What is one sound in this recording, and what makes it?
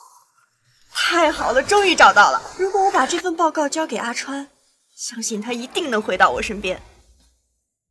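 A young woman speaks with excitement, close by.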